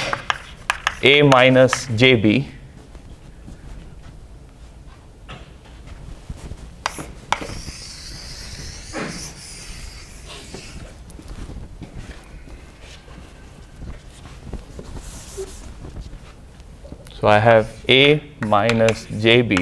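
A man lectures in a large room, his voice close and echoing slightly.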